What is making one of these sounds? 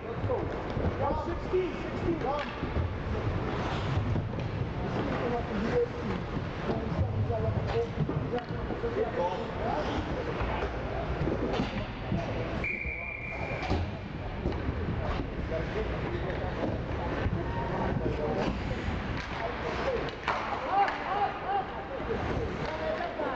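Young players shout and call out across an echoing rink.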